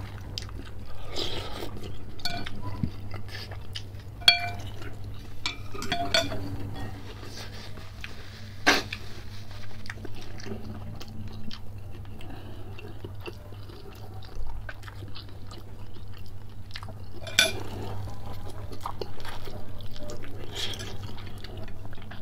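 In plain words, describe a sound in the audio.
A man chews and smacks his lips wetly, close to the microphone.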